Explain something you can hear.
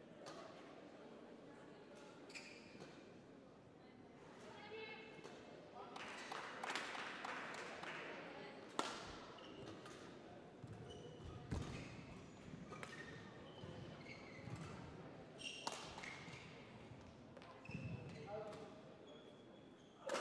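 A shuttlecock is struck sharply back and forth with rackets.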